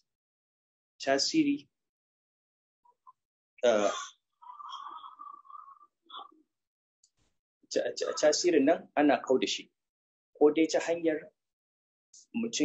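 A man speaks calmly through an online call, with pauses.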